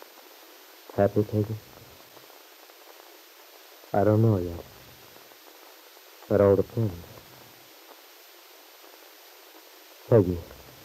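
An elderly woman speaks in short, calm phrases.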